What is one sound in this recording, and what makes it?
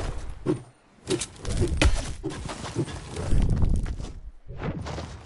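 A pickaxe strikes a brick wall with sharp knocks.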